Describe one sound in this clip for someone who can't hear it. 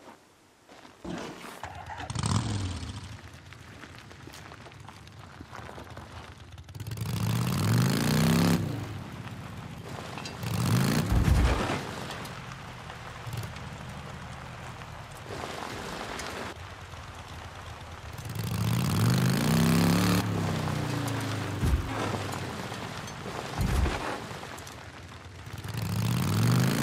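A motorcycle engine revs up and down as it rides over rough ground.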